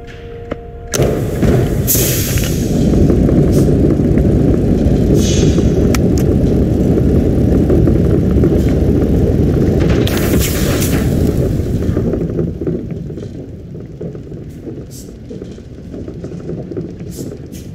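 A heavy machine engine rumbles and clanks loudly.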